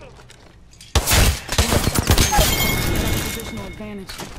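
Gunshots fire in rapid, loud bursts.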